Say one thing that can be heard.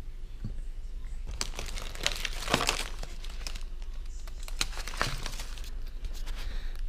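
Plastic and foil wrappers crinkle and rustle as they are handled.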